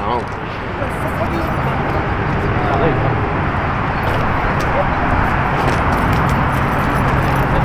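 Men talk outdoors nearby.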